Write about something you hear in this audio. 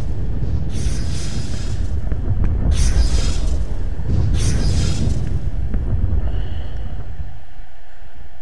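A deep engine rumble drones.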